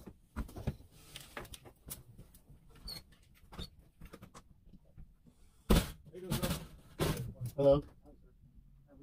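Objects clatter and knock nearby.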